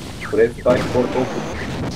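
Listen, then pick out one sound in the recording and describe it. A weapon fires a crackling electric beam.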